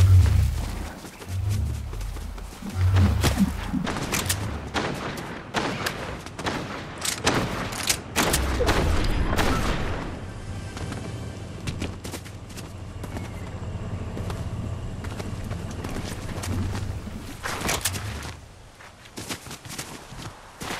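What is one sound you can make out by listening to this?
Footsteps rustle quickly through leafy undergrowth.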